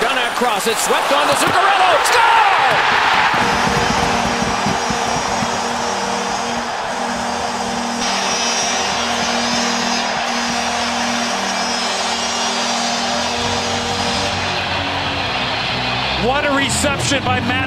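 A large crowd cheers and roars loudly in a big arena.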